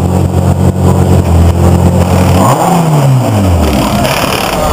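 A race car engine idles loudly nearby, then winds down and stops.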